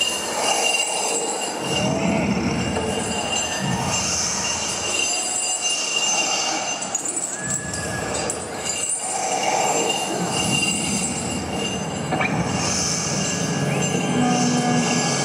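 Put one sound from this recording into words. Loud live music plays through loudspeakers in a large echoing hall.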